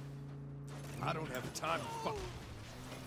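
A crash and explosion burst out.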